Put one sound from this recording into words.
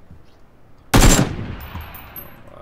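A rifle fires shots at close range.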